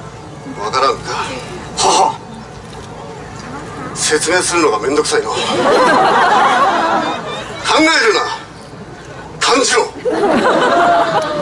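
A man shouts theatrically into a microphone over loudspeakers outdoors.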